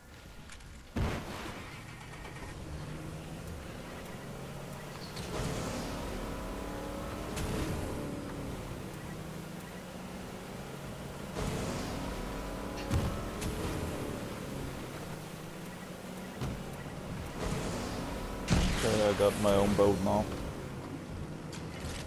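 A motorboat engine roars as the boat speeds over water.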